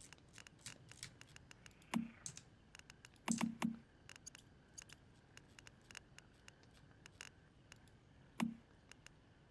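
Soft menu clicks tick quickly, with a few louder thumps.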